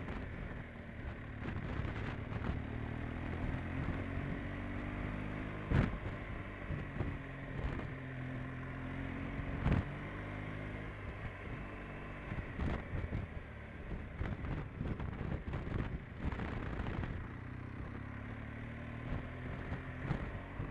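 Wind buffets loudly against a rider's helmet.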